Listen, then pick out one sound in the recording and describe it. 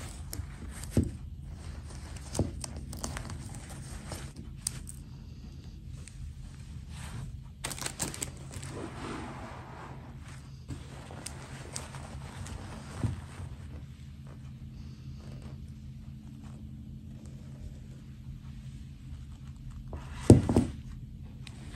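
Plastic dolls knock and clatter against each other.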